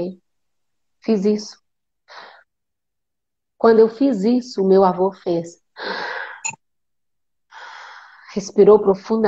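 A woman speaks with animation, heard through an online call.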